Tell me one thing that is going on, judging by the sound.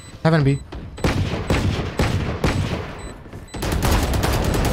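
A rifle fires in quick bursts of shots.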